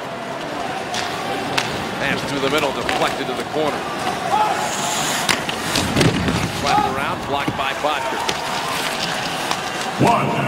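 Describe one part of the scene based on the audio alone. Hockey sticks clack against a puck.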